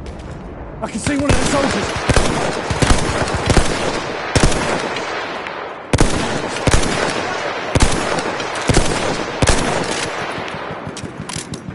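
A rifle fires sharp single shots, one after another.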